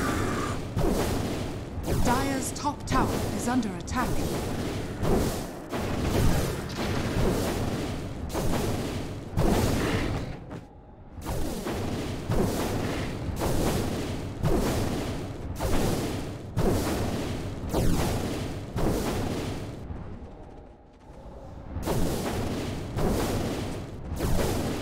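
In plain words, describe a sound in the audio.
Blades strike and magic blasts crackle in a fierce fight.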